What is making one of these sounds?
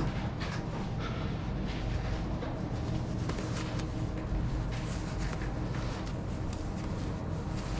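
A spray can cap clicks softly as it is handled.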